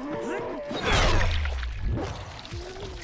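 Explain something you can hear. A heavy blow strikes a body with a wet, squelching thud.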